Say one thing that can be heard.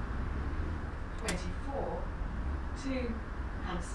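Bus doors hiss and clunk open.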